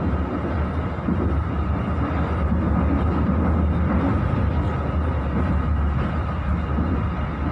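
A vehicle rumbles steadily as it drives along.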